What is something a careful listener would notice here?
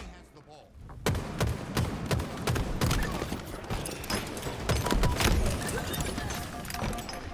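Gunfire from a video game rattles in quick bursts.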